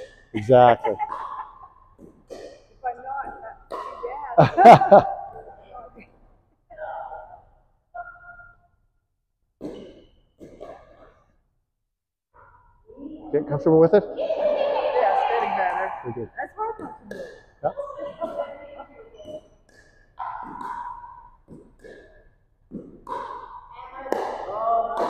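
Paddles knock a plastic ball back and forth in a large echoing hall.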